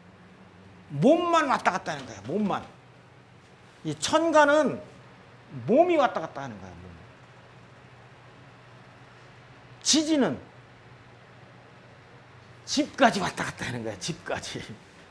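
An elderly man speaks with animation in short bursts through a microphone.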